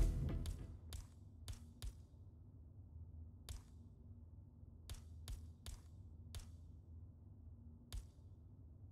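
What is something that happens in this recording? Short interface clicks sound as menu items change.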